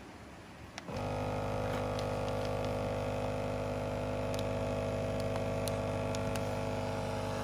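A vacuum sealer motor hums steadily.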